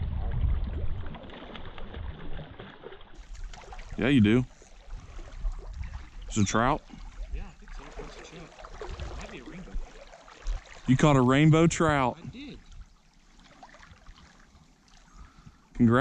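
A stream flows gently.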